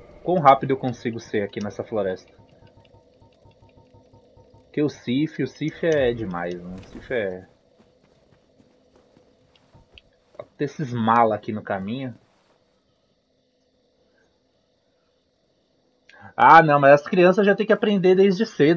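A young man talks casually into a microphone, close up, in short bursts.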